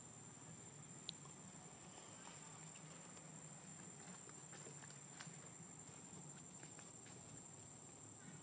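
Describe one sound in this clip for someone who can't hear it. Dry leaves rustle softly as a small monkey shifts on the ground.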